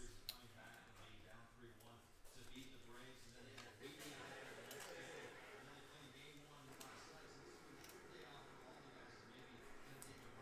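Plastic card sleeves crinkle between fingers.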